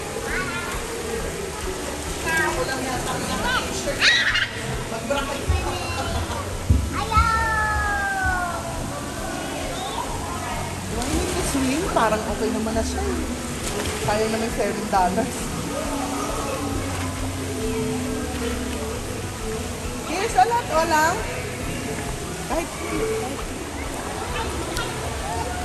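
Water splashes and laps as a small child wades through a shallow pool.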